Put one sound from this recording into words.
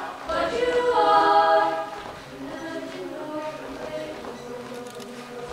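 A mixed choir sings together in harmony, loud at first and then softer, in a large echoing hall.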